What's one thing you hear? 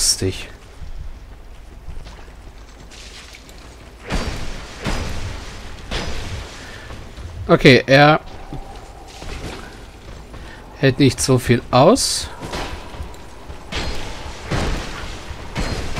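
Blades strike and thud in a close fight.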